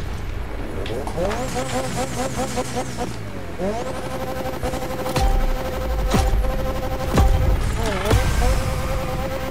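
A racing car engine revs and idles loudly.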